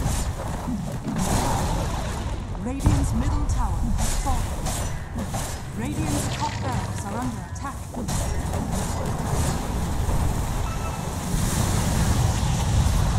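Game spells crackle and blast in a dense, noisy fight.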